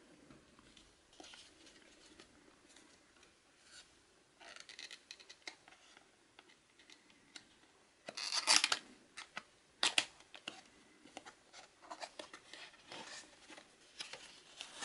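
Hands handle a cardboard box, which rustles and scrapes.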